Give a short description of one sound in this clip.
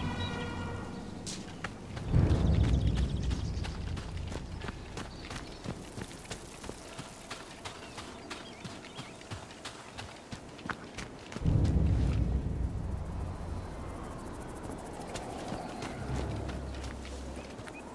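Footsteps crunch steadily on grass and gravel.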